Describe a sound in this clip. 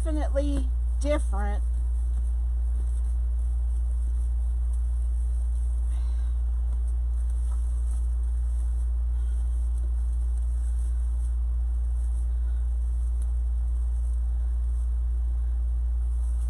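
Plastic tinsel and mesh rustle softly as hands arrange a wreath.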